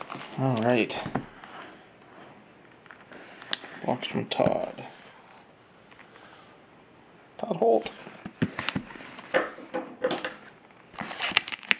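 A padded paper envelope rustles as it is handled.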